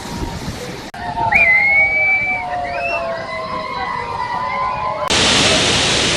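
A crowd of people cheers and whistles outdoors.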